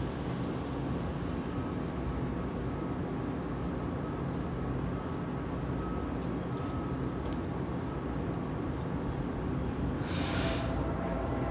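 A train rumbles steadily as it approaches in the distance.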